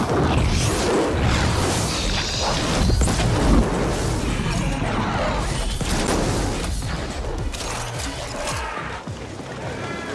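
Explosions burst and roar in quick succession.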